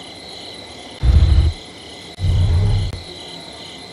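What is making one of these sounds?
Deep booming thuds sound as a game's score adds up.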